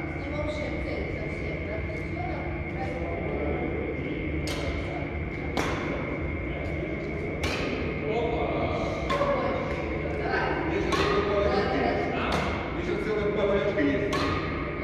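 Shuttlecocks are struck with rackets, sharp pops echoing in a large hall.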